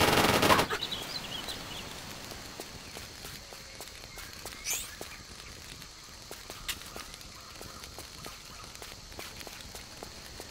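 Footsteps crunch steadily through leaves and undergrowth.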